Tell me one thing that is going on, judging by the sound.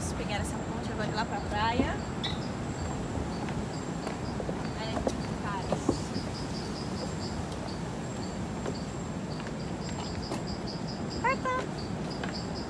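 A young woman laughs and talks softly close by.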